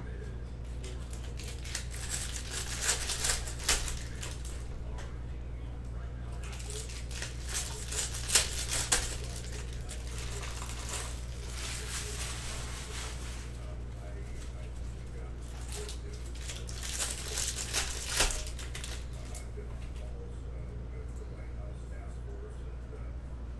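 Cards are shuffled and flicked by hand.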